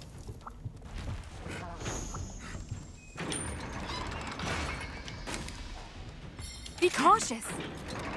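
Game sound effects clatter and chime.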